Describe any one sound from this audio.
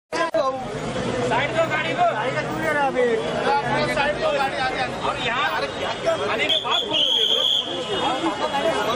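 A crowd of men shouts and calls out excitedly nearby.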